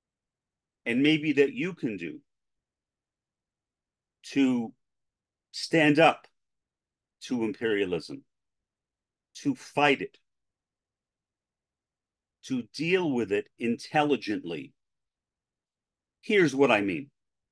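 A middle-aged man speaks calmly in short phrases with pauses, heard through a microphone in an online call.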